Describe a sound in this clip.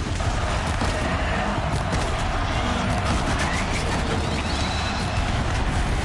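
A bowstring twangs as arrows are shot.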